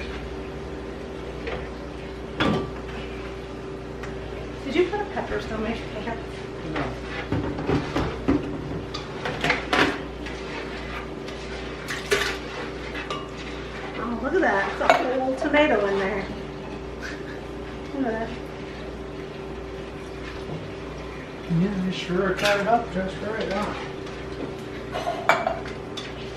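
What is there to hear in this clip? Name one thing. Dishes and utensils clink and knock.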